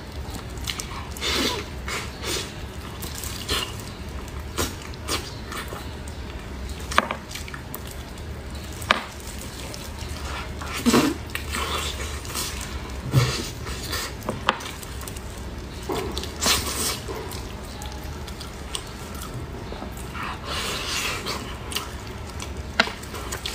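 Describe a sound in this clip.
A young woman chews and smacks her lips loudly, close up.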